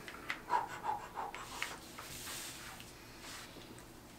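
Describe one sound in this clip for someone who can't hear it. Playing cards tap and slide softly on a table.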